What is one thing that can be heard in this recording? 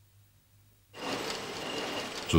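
A machine whirs and rattles steadily.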